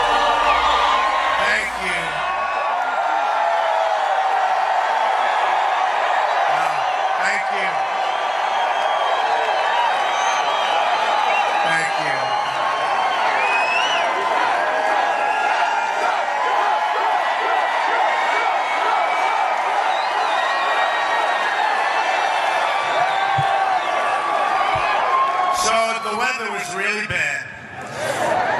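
A large crowd cheers and chants loudly in a big echoing arena.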